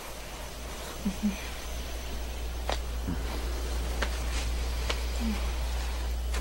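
A young man murmurs softly close by.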